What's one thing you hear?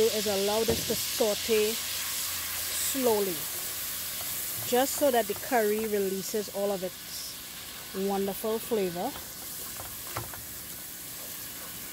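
A spatula scrapes and stirs inside a pot.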